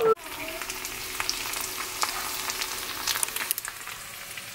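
Sausage slices sizzle and crackle in a hot frying pan.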